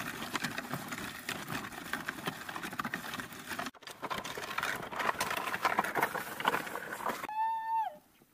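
A wooden pallet scrapes and rattles as it is dragged over gravel.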